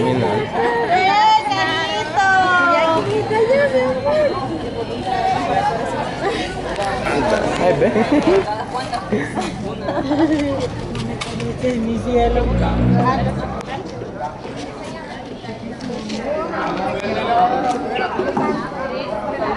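Women and children chatter and call out nearby.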